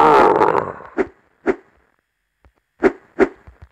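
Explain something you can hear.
Footsteps thud quickly and evenly.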